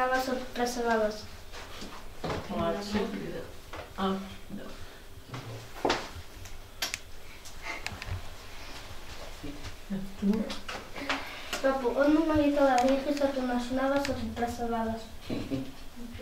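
An elderly woman speaks warmly up close.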